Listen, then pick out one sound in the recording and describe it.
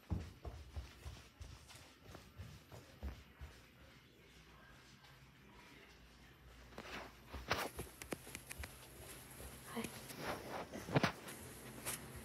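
Footsteps thud softly on carpet.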